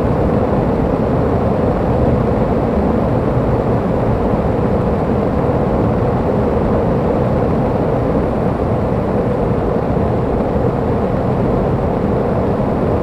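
Bicycle tyres rumble steadily over cobbles.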